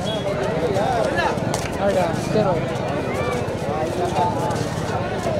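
A large crowd of men shouts and cheers close by.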